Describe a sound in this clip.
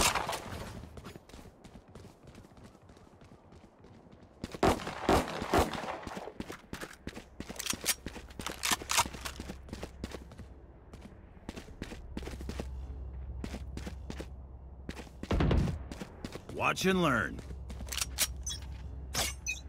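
Footsteps patter on stone as a character runs.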